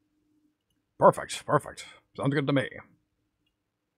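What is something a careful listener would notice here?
A man speaks briefly and with animation into a microphone.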